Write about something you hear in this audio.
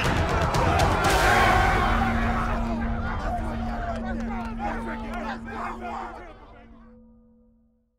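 Young men shout and cheer excitedly up close.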